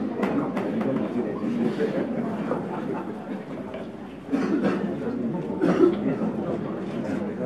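A crowd murmurs and chatters in an echoing hall.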